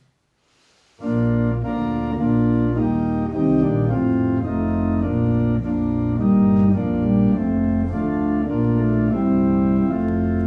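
A keyboard instrument plays a slow hymn tune.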